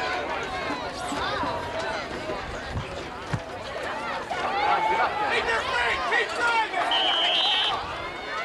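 Young men shout and call out across an open field.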